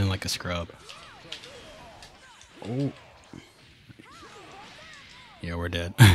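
Punches land and energy blasts crash in quick bursts.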